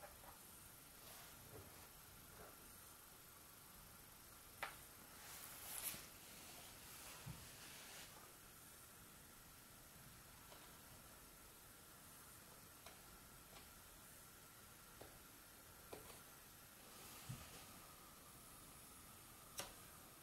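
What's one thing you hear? Small objects tap and click on a wooden tabletop.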